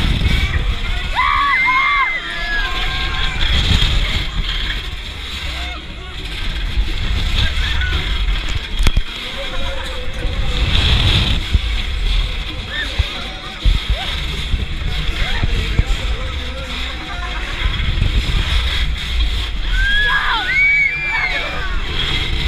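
Young riders scream with excitement.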